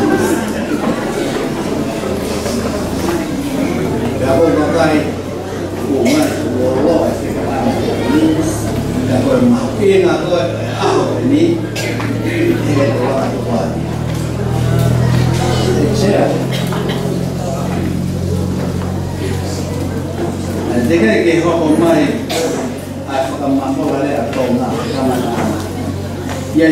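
An elderly man speaks calmly through a microphone and loudspeakers in an echoing hall.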